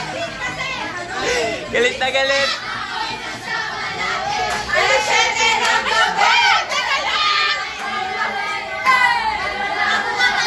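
Young women chatter and shout excitedly in a crowded room.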